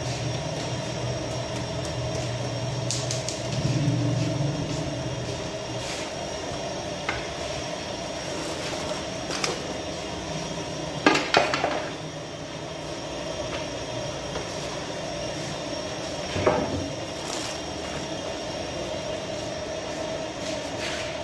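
A fire roars steadily inside an oven.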